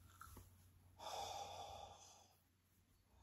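Fabric rustles as it is unfolded.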